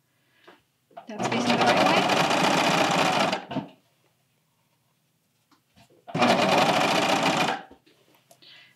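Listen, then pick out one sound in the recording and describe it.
A sewing machine runs fast in short bursts.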